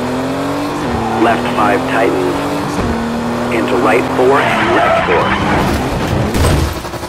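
Tyres screech on the road through the corners.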